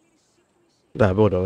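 A young man speaks loudly and animatedly into a close microphone.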